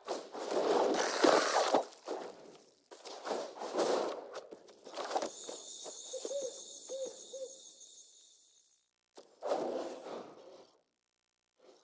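Digital card game sound effects whoosh and chime.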